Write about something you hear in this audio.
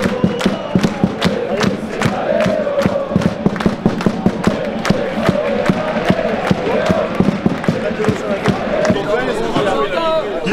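A crowd of fans chants loudly outdoors.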